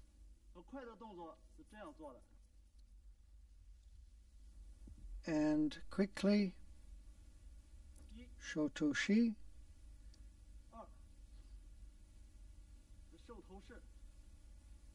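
A man speaks calmly and clearly, as if narrating.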